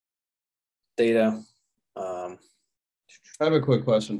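A man speaks calmly into a close microphone, in short phrases.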